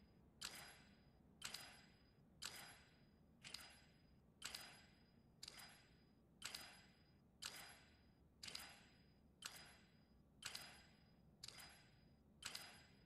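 A gun fires once every second at a steady pace, each shot ringing out briefly in an echoing room.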